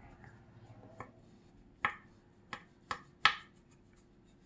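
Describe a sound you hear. A brush taps and dabs against wood.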